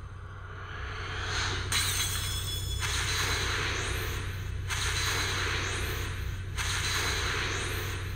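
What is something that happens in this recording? A bright magical shimmer with rising swooshes plays as items are revealed.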